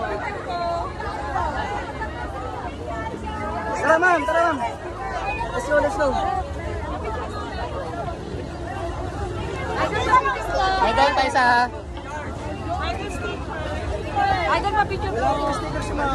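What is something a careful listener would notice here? A crowd of people chatters and calls out nearby outdoors.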